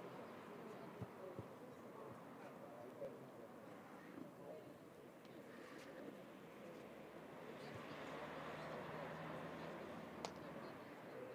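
A tennis ball is struck with a racket, with sharp pops some distance away.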